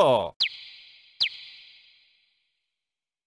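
A short electronic chime sounds twice, falling in pitch and ringing out briefly.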